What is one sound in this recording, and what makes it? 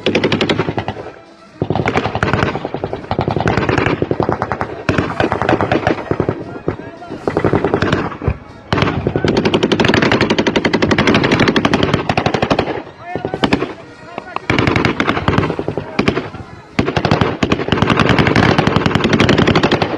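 Rifles fire in rapid, rattling bursts nearby, echoing across the mountains.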